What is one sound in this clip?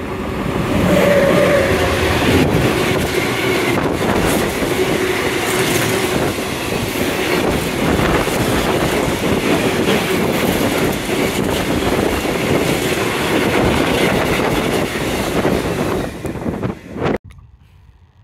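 A freight train rumbles past close by, its wheels clattering loudly on the rails.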